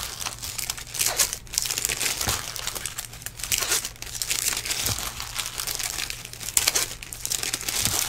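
Trading cards rustle and slide against each other as hands shuffle them.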